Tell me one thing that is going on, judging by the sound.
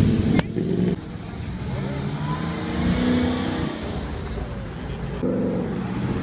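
A muscle car pulls away with a deep engine rumble.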